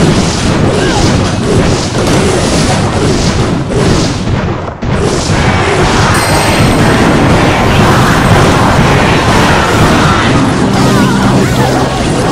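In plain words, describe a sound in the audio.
Cartoonish battle sound effects clash, thud and crackle without pause.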